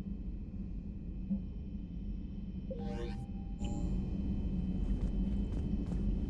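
A low, steady hum of machinery fills the space.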